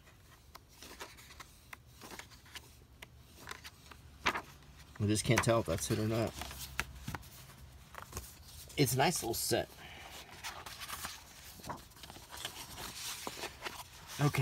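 Book pages rustle and flip as a hand leafs through them.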